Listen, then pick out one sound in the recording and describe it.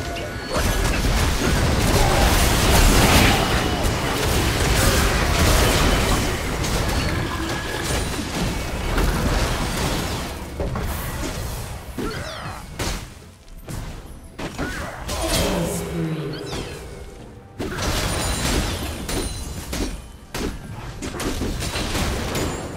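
Game spell effects and weapon hits crash and whoosh in rapid bursts.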